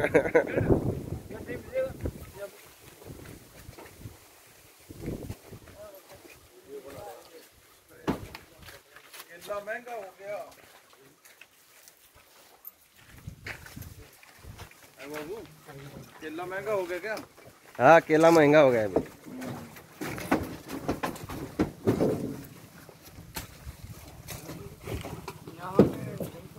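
A man talks close by, outdoors.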